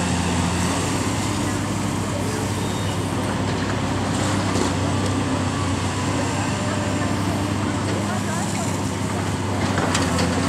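A heavy excavator engine rumbles steadily.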